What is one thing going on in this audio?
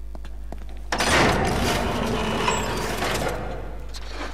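An electric machine crackles and buzzes loudly, then dies down.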